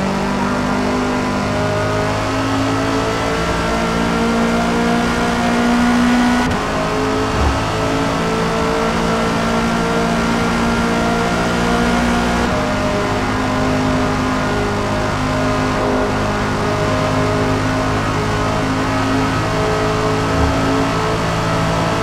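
A racing car engine roars loudly and steadily at high revs.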